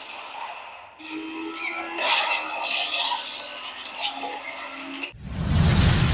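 Racing car engines roar from a phone game.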